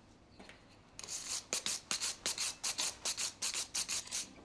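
A metal object is scraped quickly back and forth.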